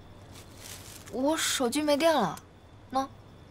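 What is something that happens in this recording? A young woman answers softly nearby.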